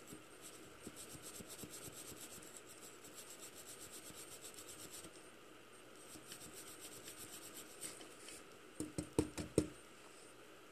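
A metal part knocks and clicks as it is handled.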